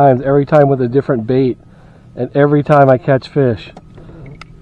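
A man speaks calmly close to the microphone.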